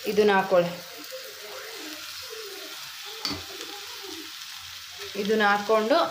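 Batter pours into a hot pan and sizzles.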